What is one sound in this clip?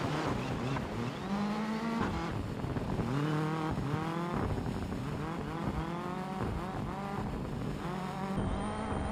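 A rally car engine revs hard, rising and falling again and again as it shifts through the gears.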